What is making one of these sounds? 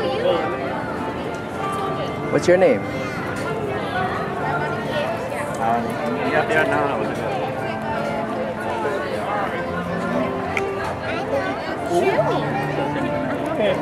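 A little girl speaks softly, close by.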